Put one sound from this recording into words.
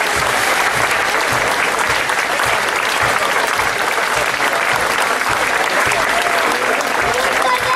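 A crowd murmurs close by.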